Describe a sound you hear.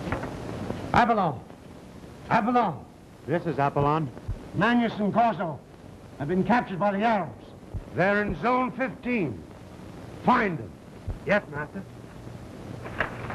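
A young man calls out loudly, in long rising and falling cries.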